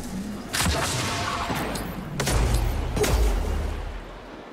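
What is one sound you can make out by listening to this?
Heavy gunfire blasts in rapid bursts.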